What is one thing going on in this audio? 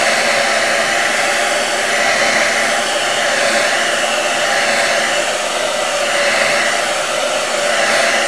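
A hair dryer blows with a steady, loud whirring roar.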